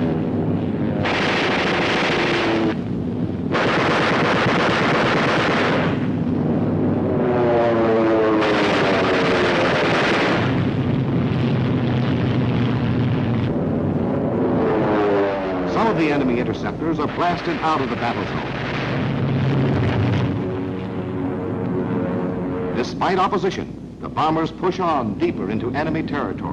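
Aircraft engines drone overhead.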